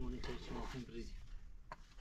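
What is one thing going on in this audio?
A trowel scrapes and taps on concrete blocks.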